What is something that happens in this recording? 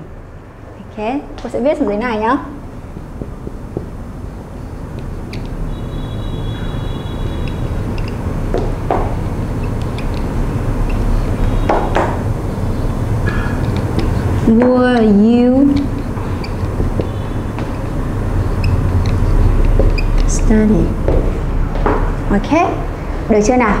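A young woman speaks calmly, as if teaching.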